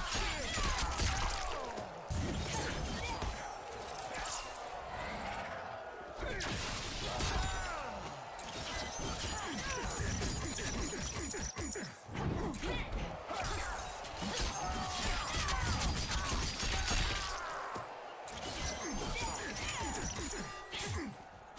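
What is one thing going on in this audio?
Ice crackles and shatters in bursts.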